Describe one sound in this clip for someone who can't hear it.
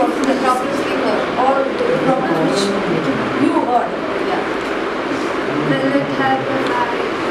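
Several children talk and chatter in the background.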